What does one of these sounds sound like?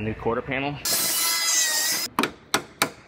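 An angle grinder cuts metal with a loud whine.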